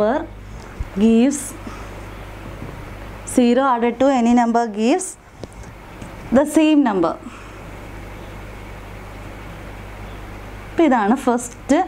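A young woman speaks calmly into a nearby microphone, in short phrases with pauses.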